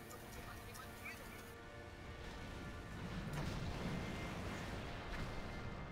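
Magic blasts and explosions crackle faintly during a fight.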